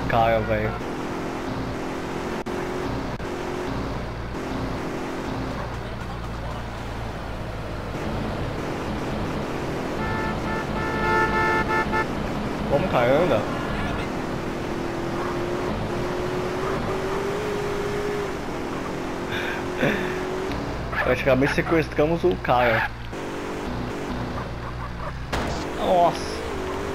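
A car engine hums steadily as a taxi drives along a road.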